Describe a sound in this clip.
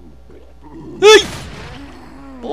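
A loud wet explosion bursts close by.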